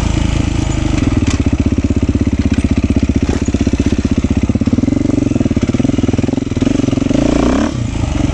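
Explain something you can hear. A dirt bike engine revs and roars close by.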